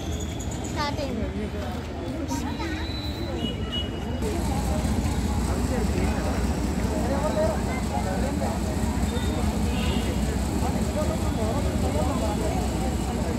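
Men talk among themselves nearby outdoors.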